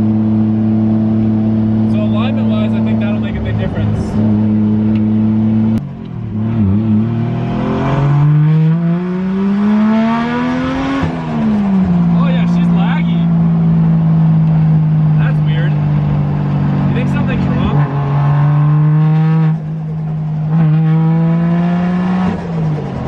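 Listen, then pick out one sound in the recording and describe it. A car engine drones loudly, revving up and down as gears shift.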